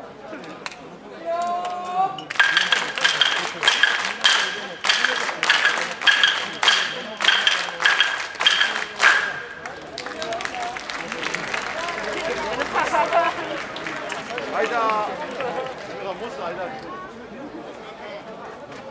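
A large crowd outdoors chants and shouts rhythmically.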